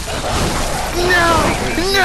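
A blade swishes and slashes.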